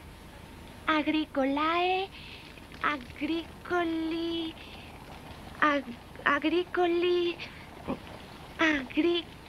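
A young girl speaks with feeling, close by.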